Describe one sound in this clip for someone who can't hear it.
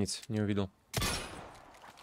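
A gunshot cracks, sharp and short.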